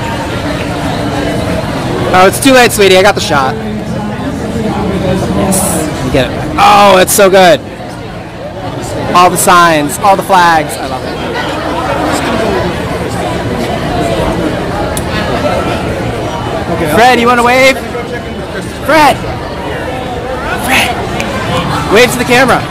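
A crowd murmurs and talks in the background.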